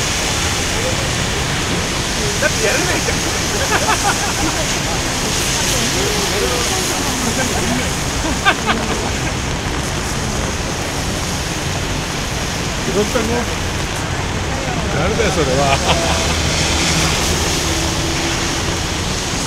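Traffic rumbles steadily along a nearby road outdoors.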